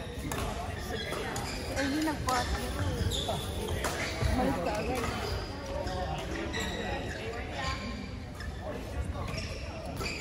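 Shuttlecocks are struck by rackets with sharp pops.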